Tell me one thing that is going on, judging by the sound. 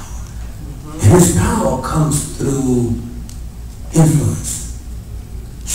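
A man sings with feeling into a microphone in an echoing hall.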